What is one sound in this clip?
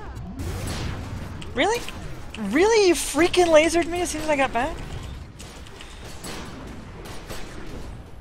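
Energy weapons fire and crackle in a battle.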